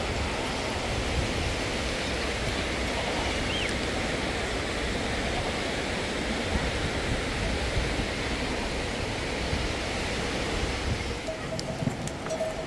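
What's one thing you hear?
A river rushes steadily below.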